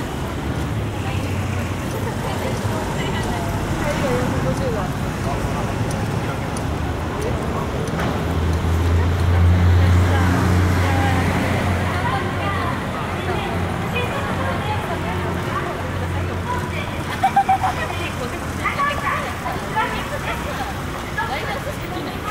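Voices of passers-by murmur outdoors.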